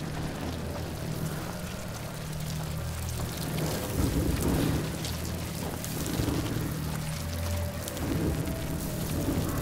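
Footsteps crunch on dry ground and straw.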